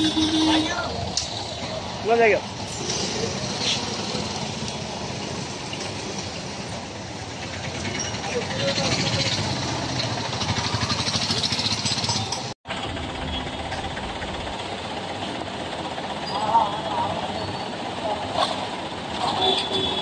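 Busy street traffic rumbles steadily outdoors.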